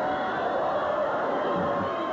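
A man shouts loudly in a large echoing hall.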